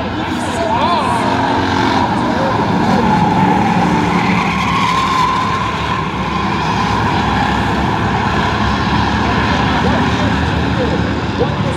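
Race car engines roar loudly as a pack of cars speeds past.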